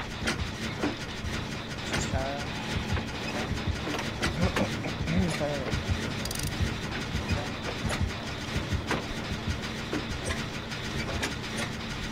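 Metal parts clank and rattle as a generator is repaired.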